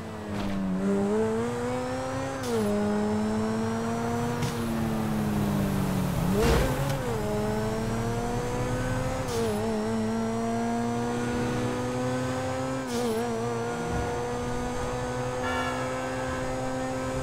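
A sports car engine roars steadily, its pitch shifting with each gear change.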